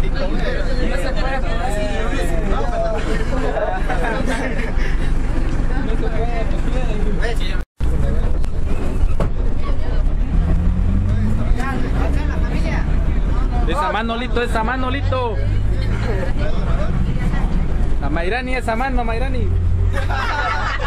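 Young men and women chatter and talk around the bus.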